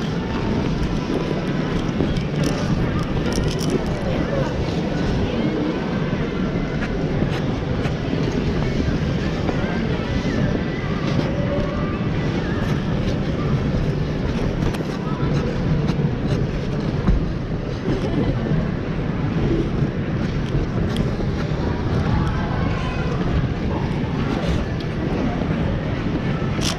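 A crowd of skaters chatters in a large echoing hall.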